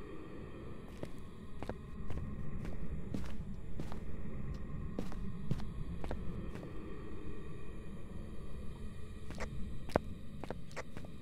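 Footsteps tap steadily on hard ground.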